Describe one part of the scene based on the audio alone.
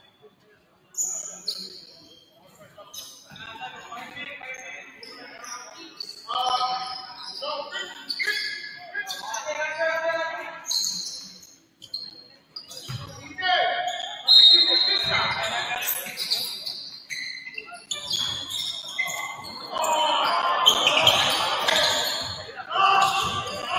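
Sneakers squeak on a gym floor as players run.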